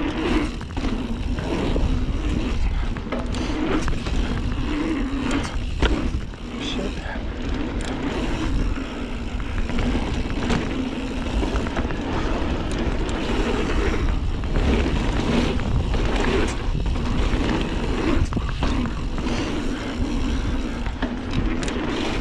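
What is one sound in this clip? A bike frame rattles and clunks over bumps.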